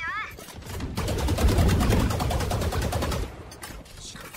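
Rapid gunfire from a game rattles in bursts.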